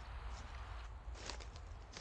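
Footsteps crunch on dry leaves and brush.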